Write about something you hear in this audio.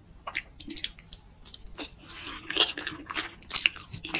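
A person chews wet food noisily up close.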